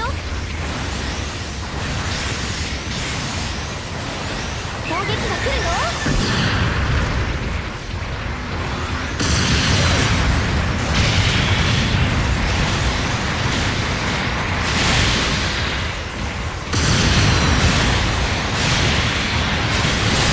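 Thrusters roar as a giant robot boosts.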